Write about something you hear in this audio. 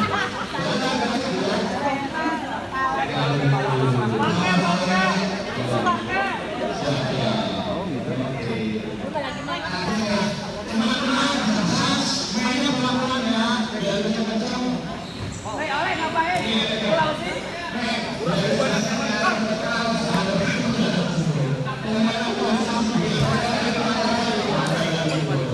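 A crowd of spectators chatters and shouts loudly in an echoing hall.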